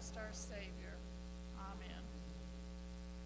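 An elderly woman speaks calmly through a microphone in a large echoing hall.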